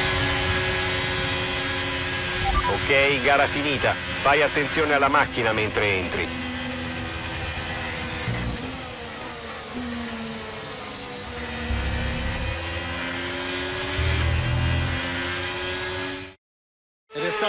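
A racing car engine screams at high revs, shifting gears as the pitch rises and falls.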